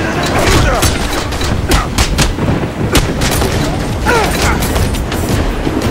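Fists thump in a brawl.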